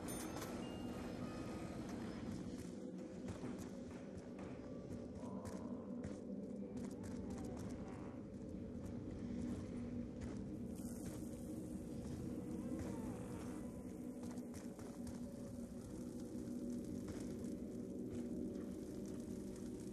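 Flames crackle and hiss nearby.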